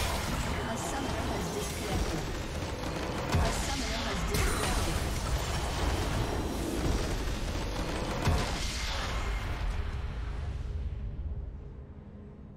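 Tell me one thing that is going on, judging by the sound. Game battle effects crackle and blast loudly.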